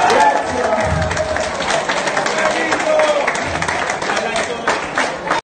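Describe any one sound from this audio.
A crowd of guests claps along rhythmically.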